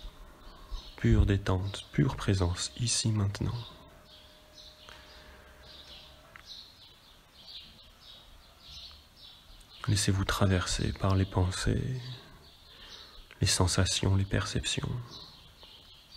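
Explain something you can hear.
A man speaks slowly and calmly.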